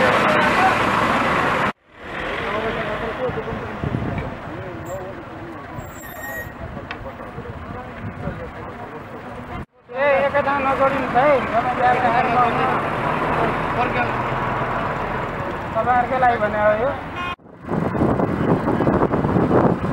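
A crowd of men chatters nearby.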